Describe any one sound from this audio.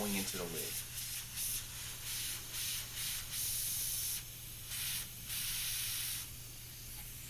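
Compressed air hisses from a valve in short bursts.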